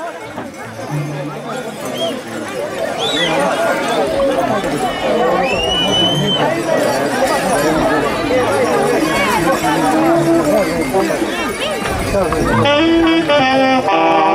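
A large outdoor crowd chatters and calls out.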